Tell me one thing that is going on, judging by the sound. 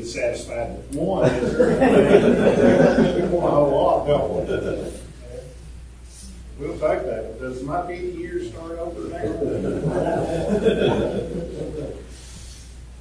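A group of men and women sing together in a hall with a slight echo.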